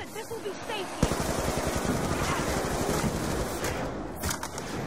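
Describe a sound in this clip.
An automatic rifle fires rapid shots.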